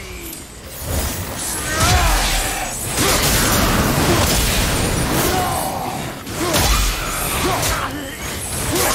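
Weapons clash and slash in a fight.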